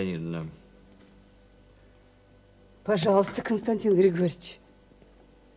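A middle-aged woman speaks with animation nearby.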